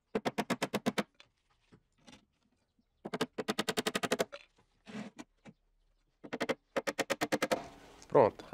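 A man hammers rapidly in quick, light taps.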